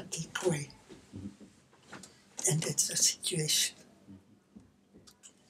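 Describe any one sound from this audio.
An elderly man speaks cheerfully and animatedly close by.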